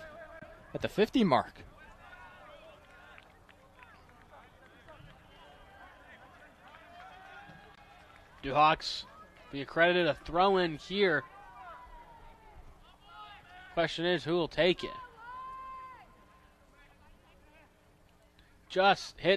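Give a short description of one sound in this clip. Soccer players shout loudly to each other outdoors.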